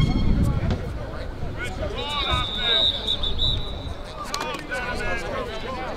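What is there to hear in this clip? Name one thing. A man speaks loudly and firmly to a group outdoors.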